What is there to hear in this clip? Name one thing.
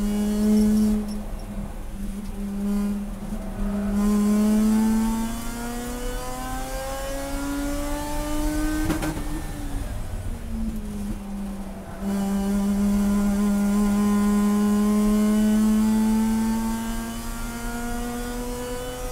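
A race car engine roars loudly from inside the cabin, revving up and down through the gears.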